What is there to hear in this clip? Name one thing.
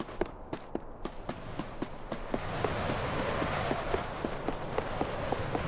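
Quick light footsteps patter steadily.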